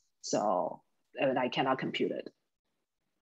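A woman speaks briefly and calmly over an online call.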